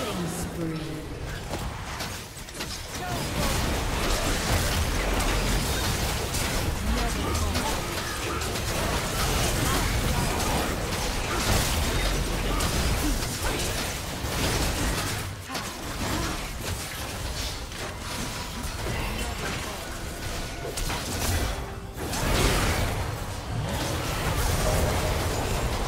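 Spell effects crackle and burst in a game fight.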